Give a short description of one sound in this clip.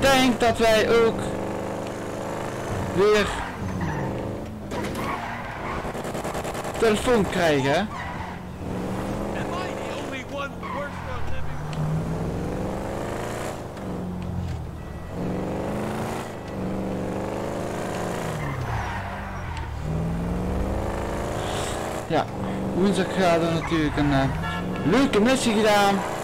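A car engine revs, rising and falling in pitch as the car speeds up and slows down.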